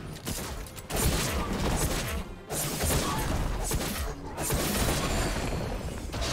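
Video game spells whoosh and crackle during a fight.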